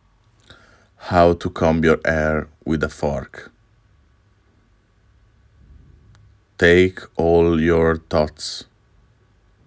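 A man speaks slowly and close to the microphone.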